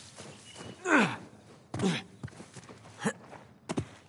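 Hands and feet scrape against rock while climbing.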